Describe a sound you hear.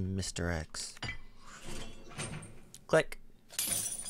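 Bolt cutters snap through a metal chain.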